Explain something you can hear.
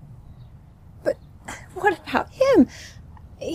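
A young woman speaks with emotion, her voice rising and breaking.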